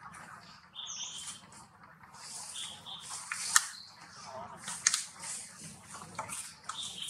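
A baby monkey suckles with soft wet smacking sounds close by.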